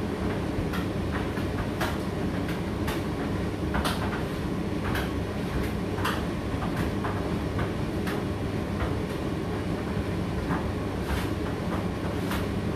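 A condenser tumble dryer runs with a steady low hum.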